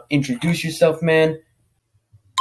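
A young man talks with animation over a microphone.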